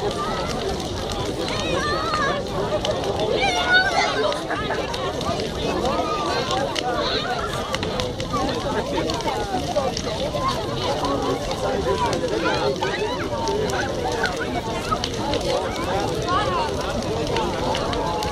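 Burning wood crackles and pops in a bonfire.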